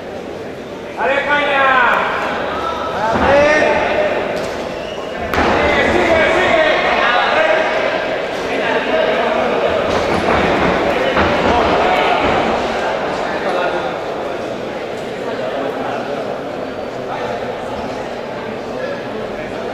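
A crowd in an indoor hall shouts and cheers.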